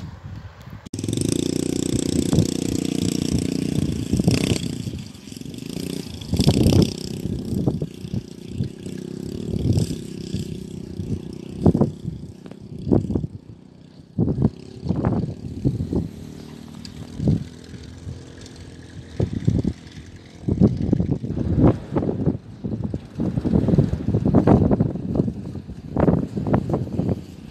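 A small motorbike engine buzzes and revs close by.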